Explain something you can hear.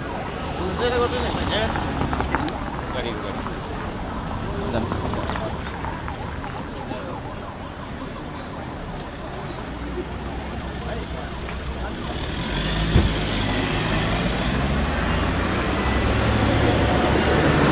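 Cars drive slowly past close by on a paved street.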